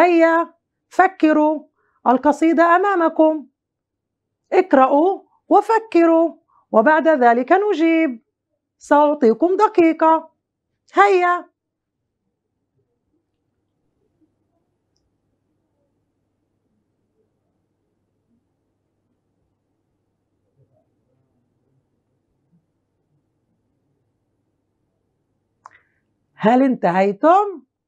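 A woman speaks clearly and with animation into a close microphone, pausing at times.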